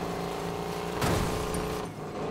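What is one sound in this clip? Two cars crash together with a loud bang.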